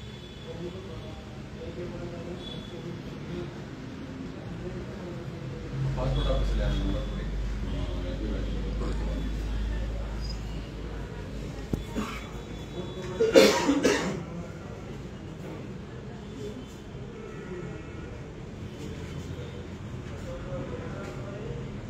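Several men and women talk at once nearby.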